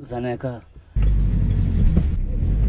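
A car engine rumbles low.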